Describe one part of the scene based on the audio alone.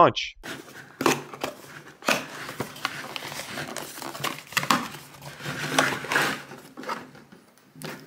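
A cardboard box slides open with a soft scrape.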